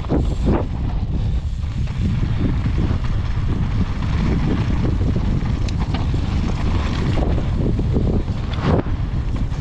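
Bicycle tyres crunch and rattle over loose gravel and rocks.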